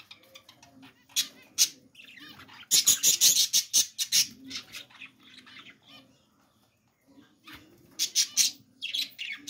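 Small birds chirp and tweet close by.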